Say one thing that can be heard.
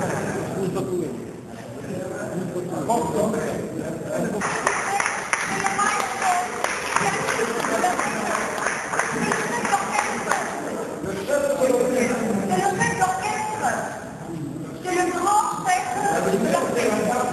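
A crowd of men and women chatter in a busy room.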